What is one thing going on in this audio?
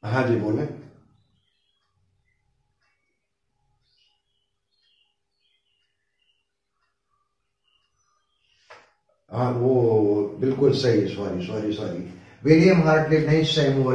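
An elderly man speaks calmly and clearly into a close microphone, as if teaching.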